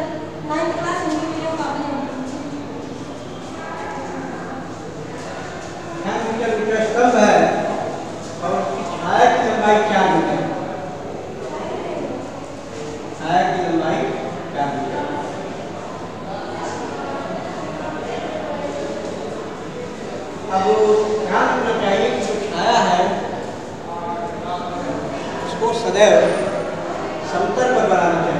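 A middle-aged man speaks steadily, close by.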